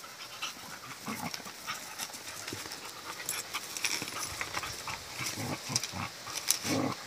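Dogs growl playfully while wrestling.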